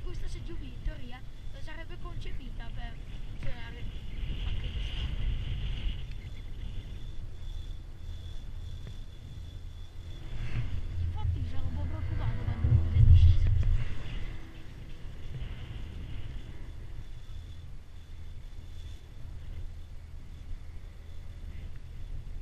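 Wind blows steadily across an open mountainside.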